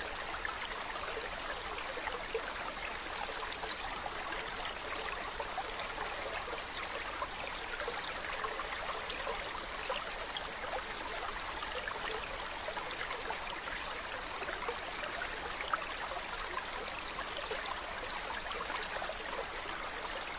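Water splashes as people wade and scoop with a net.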